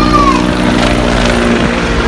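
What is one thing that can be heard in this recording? A helicopter drones overhead.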